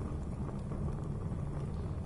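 A torch flame flickers and crackles softly.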